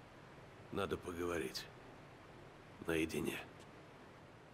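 A man speaks calmly and low, close by.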